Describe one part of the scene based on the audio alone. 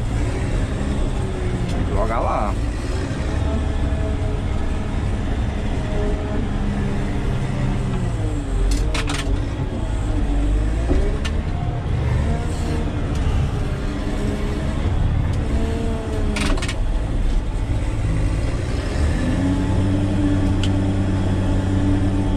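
A heavy diesel engine rumbles steadily from inside a cab, rising and falling in pitch.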